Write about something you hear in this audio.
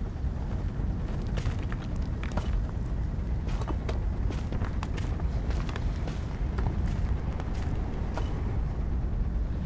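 Footsteps crunch over rubble and debris.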